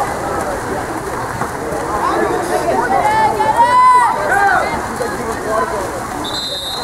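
Water splashes as swimmers thrash and kick in a pool.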